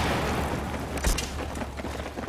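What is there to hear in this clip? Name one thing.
A rifle fires a single loud shot nearby.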